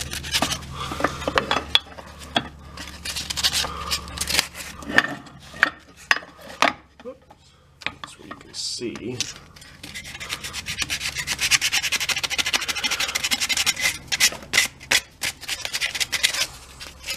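Sandpaper rasps back and forth against a wooden handle in quick strokes.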